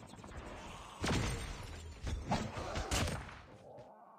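Gunshots bang in short bursts.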